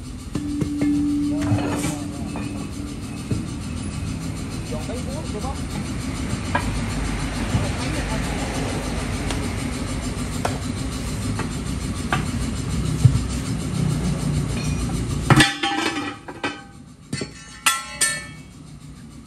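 A metal bar scrapes and clanks against a wheel rim.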